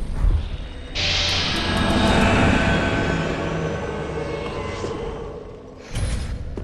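A magical shimmering whoosh swells and fades.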